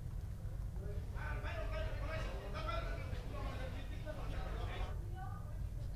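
A crowd of people murmurs and talks indoors.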